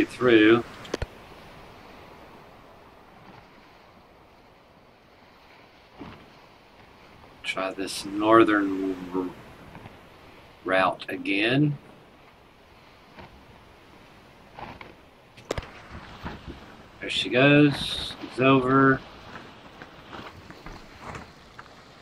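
Water rushes and splashes against the hull of a sailing ship.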